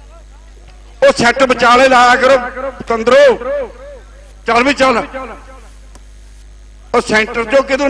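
A man announces excitedly through a loudspeaker.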